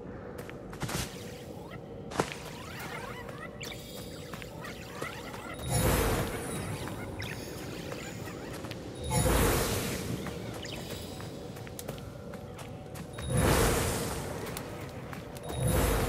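Quick footsteps run over wooden boards and grass.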